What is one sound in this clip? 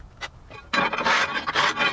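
A hand drill whirs briefly.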